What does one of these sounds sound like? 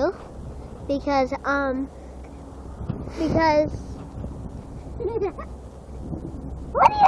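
A young girl talks and squeals excitedly close by.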